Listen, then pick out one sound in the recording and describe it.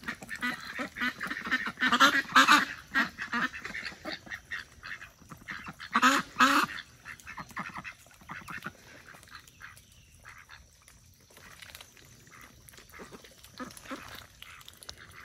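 Ducks quack loudly close by.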